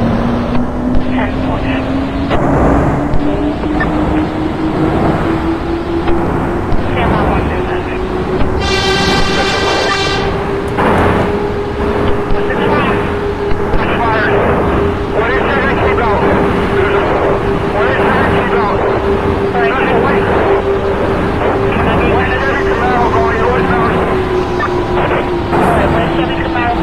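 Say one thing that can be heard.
A train's electric motor whines, rising in pitch as it speeds up and then falling slightly as it slows.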